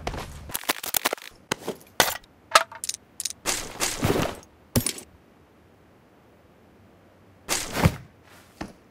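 Short clicks and rustles sound as items are picked up in a game.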